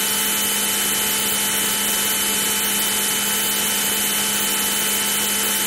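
A fighter jet engine roars steadily in an old computer game.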